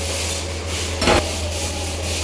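A metal pot clanks against a stove.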